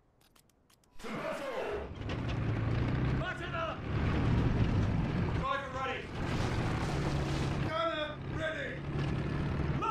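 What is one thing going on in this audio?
Tank tracks clatter and squeal over the street.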